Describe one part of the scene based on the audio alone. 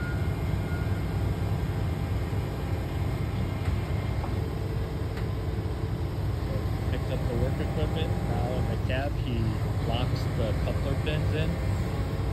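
A heavy diesel engine rumbles steadily nearby.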